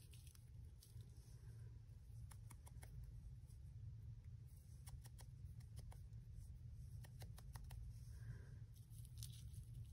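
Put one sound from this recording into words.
A foam ink tool dabs softly on paper.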